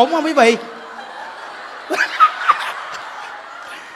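A crowd of women laughs loudly.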